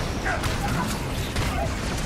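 Metal blows clang in a fight.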